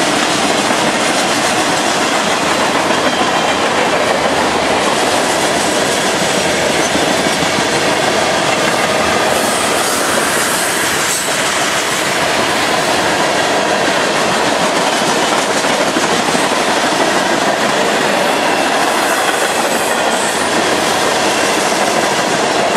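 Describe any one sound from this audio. Steel wheels clack rhythmically over rail joints.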